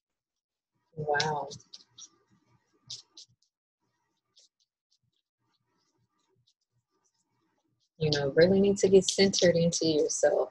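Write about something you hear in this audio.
A young woman speaks close by, calmly and warmly.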